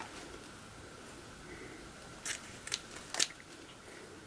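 Scissors snip through ribbon.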